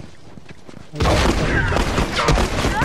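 Gunshots crack in a rapid burst.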